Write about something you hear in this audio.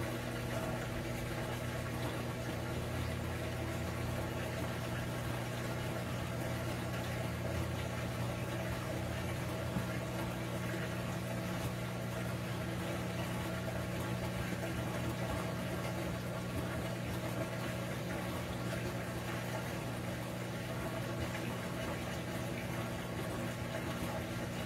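A washing machine agitates with a steady low hum and sloshing water.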